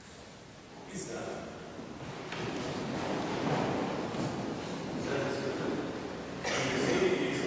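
A congregation rises to its feet with shuffling and rustling.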